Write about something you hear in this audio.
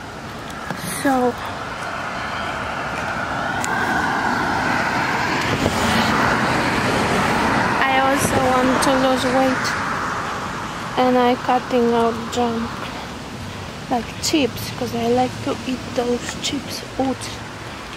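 A woman talks close by, calmly.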